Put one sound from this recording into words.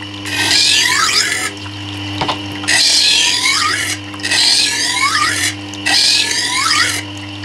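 A grinding wheel motor hums steadily.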